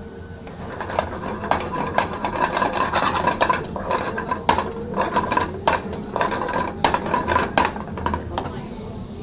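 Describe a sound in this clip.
A metal ladle clanks against a pan.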